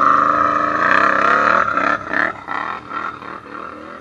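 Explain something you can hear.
Water splashes and sprays under a quad bike's wheels.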